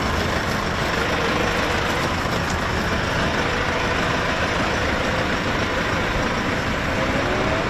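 Tractor engines idle nearby with a steady low rumble.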